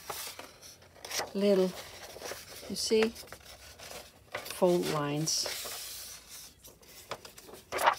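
A sheet of paper rustles and crinkles as it is folded.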